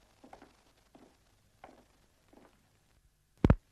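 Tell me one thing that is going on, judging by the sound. Footsteps tap slowly on pavement.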